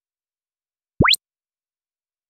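A quick rising swish sounds.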